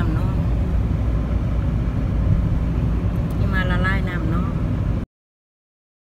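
A car rumbles steadily along a road.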